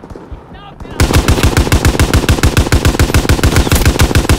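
A machine gun fires in a fast, steady burst close by.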